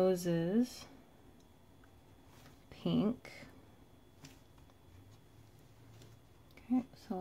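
A marker pen scratches softly across paper.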